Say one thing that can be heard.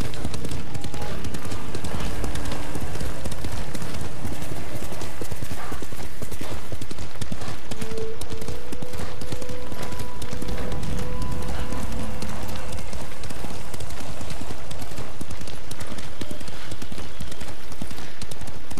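A horse's hooves gallop steadily over a dirt path.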